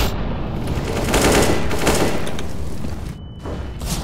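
Rifle shots crack in rapid bursts.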